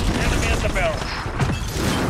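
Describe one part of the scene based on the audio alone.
Rapid gunshots crack nearby.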